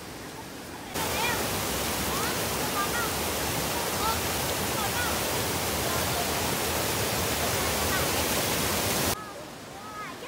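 Water rushes loudly over a weir.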